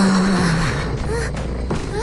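A weapon swooshes through the air.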